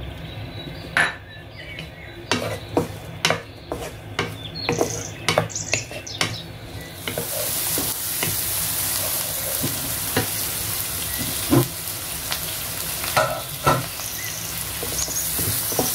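A wooden spatula scrapes and knocks against a pan.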